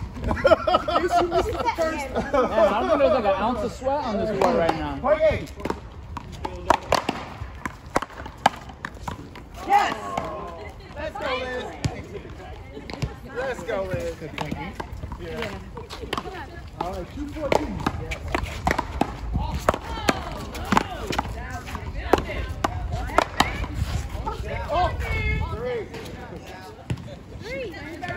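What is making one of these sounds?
Paddles smack a ball with sharp pops.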